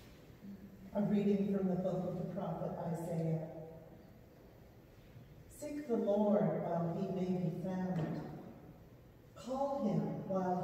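An older woman speaks calmly through a microphone in a large echoing hall.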